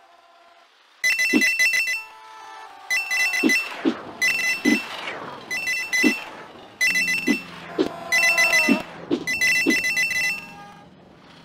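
Electronic game music plays with a bouncy beat.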